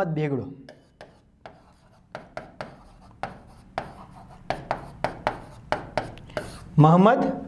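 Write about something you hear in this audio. A marker taps and squeaks against a board.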